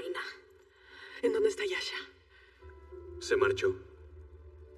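A woman speaks quietly and wearily close by.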